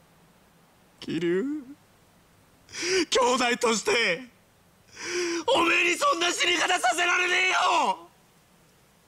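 A young man shouts urgently and emotionally, close by.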